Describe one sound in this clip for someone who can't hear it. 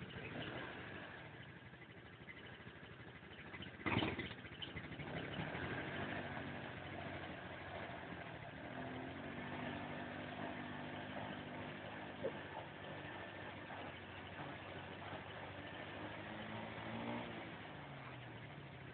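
A quad bike engine revs and labours close by.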